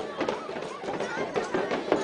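A tambourine jingles.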